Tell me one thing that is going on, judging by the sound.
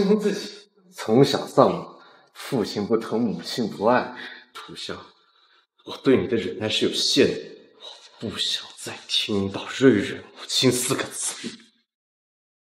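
A young man speaks calmly and firmly, close by.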